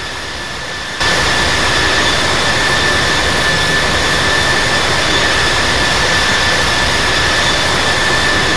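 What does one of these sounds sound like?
A jet engine whines loudly and steadily close by.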